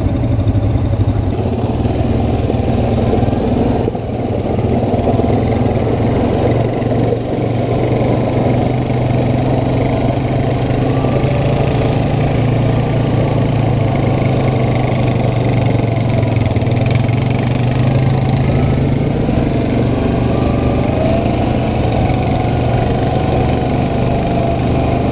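A quad bike engine rumbles steadily up close.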